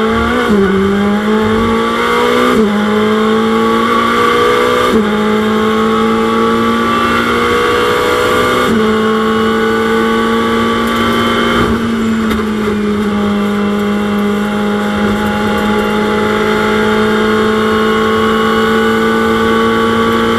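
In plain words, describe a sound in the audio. A racing car engine roars loudly, its pitch rising and dropping sharply at each gear change.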